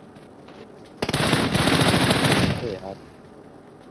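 Gunfire rattles in a rapid burst.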